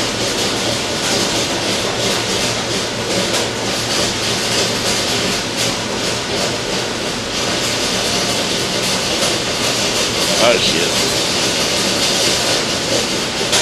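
Grain pours and rattles steadily out of a hatch into a metal bin.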